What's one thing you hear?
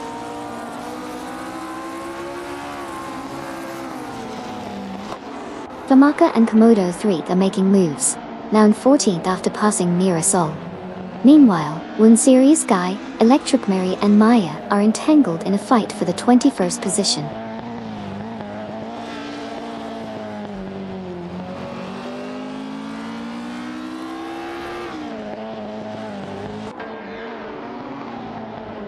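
Racing car engines whine and rise and fall in pitch as the cars speed around the track.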